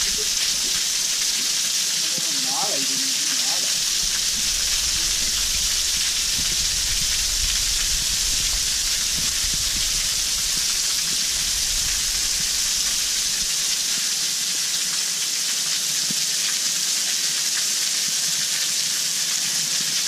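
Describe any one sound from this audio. A waterfall pours and splashes steadily close by.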